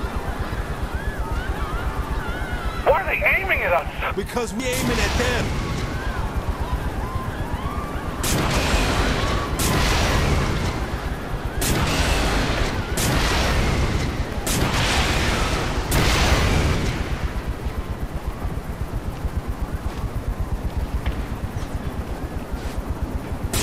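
A helicopter's blades thump steadily close by.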